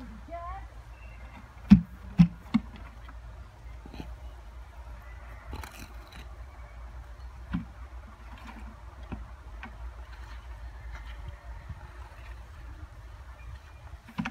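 Tools scrape and knock against soil and stone outdoors.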